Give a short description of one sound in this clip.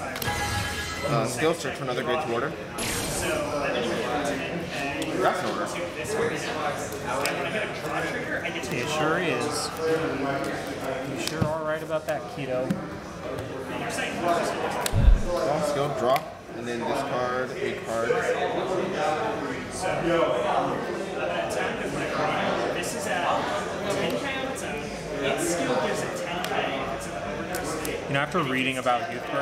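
Playing cards shuffle and slap softly onto a mat close by.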